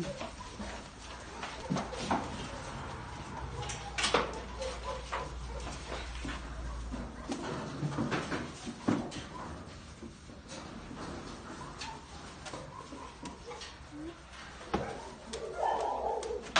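Clothing rustles against fur as a dog is held and stroked.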